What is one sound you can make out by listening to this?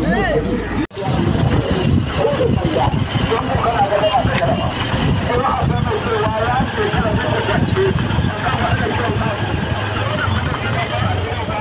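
Vehicle engines rumble as a convoy drives slowly past.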